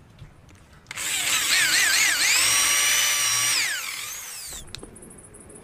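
A drill press whines loudly as it bores into wood.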